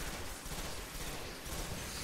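An electric blast crackles.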